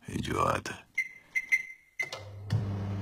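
Microwave buttons beep as they are pressed.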